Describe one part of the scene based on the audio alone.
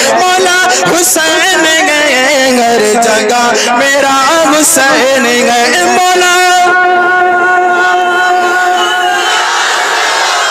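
A man chants in long, drawn-out melodic phrases through a loudspeaker in a large, echoing space.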